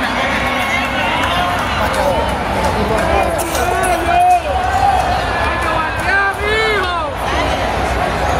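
A large crowd chatters and cheers in a big echoing stadium.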